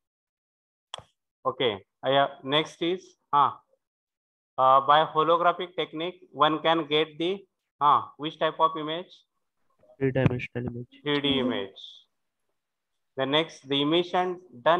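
A man speaks calmly and steadily into a close microphone, with short pauses.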